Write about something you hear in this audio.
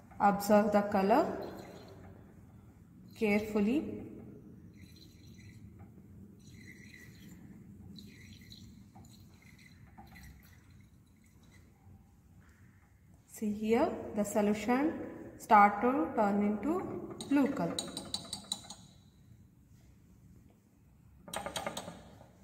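Liquid swirls softly in a glass flask.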